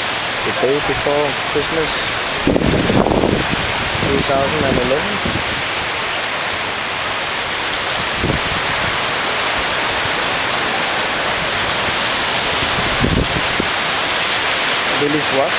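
Strong wind blows outdoors, buffeting the microphone in gusts.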